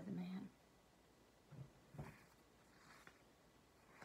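Book pages rustle as a woman turns them.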